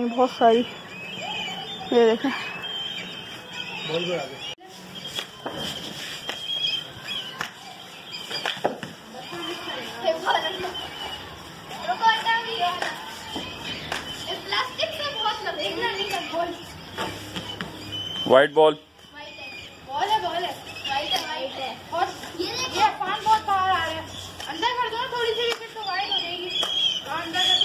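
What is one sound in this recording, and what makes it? Many kites call with shrill, wavering cries overhead, outdoors.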